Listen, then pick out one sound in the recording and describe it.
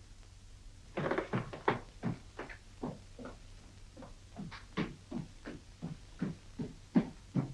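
Footsteps climb creaking wooden stairs.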